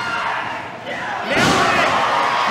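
A wrestler's body slams hard onto the ring mat.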